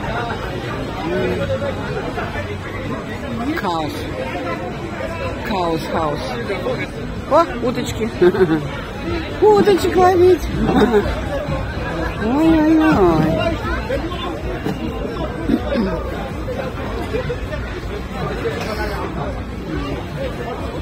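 A crowd chatters all around outdoors at a busy fair.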